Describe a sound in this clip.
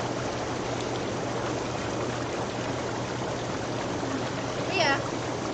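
Water bubbles and churns steadily in a hot tub.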